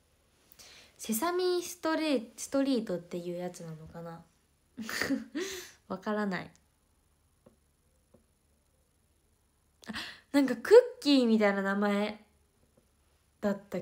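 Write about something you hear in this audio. A young woman speaks close to a microphone in a soft, lively voice, with pauses.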